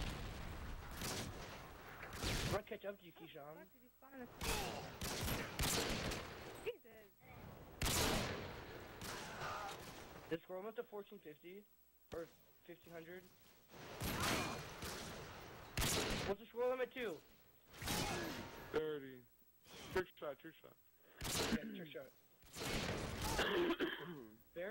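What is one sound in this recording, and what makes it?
A sniper rifle fires loud single shots.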